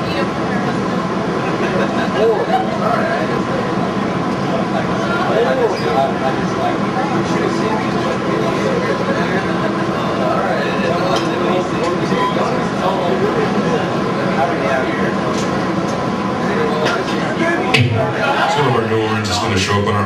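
A metal band plays loud, distorted electric guitars and bass.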